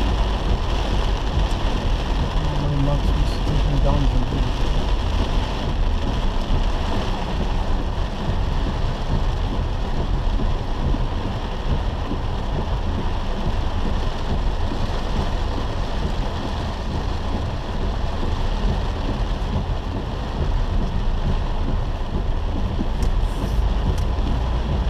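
Tyres hiss on the wet road.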